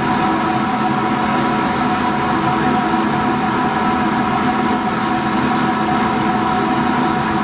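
A range hood fan whirs and hums steadily close by.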